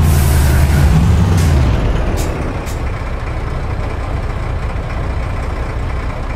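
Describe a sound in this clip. A truck engine rumbles loudly, then settles to a quieter, steady idle.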